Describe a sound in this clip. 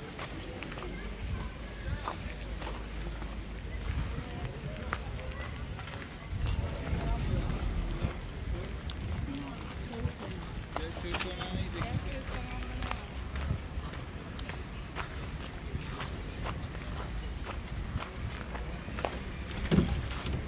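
Footsteps tap on stone paving outdoors.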